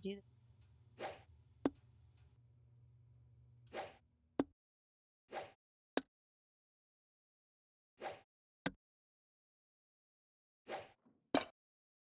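Darts whoosh through the air.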